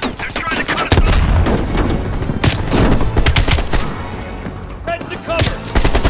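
A rifle fires in quick bursts.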